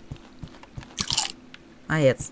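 Water splashes as a small creature struggles.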